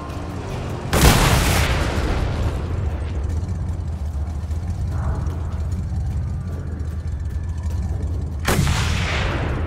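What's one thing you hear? A rifle fires a loud, echoing shot.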